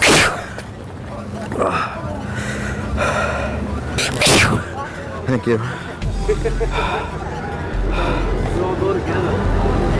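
A crowd of people chatters nearby on a busy street outdoors.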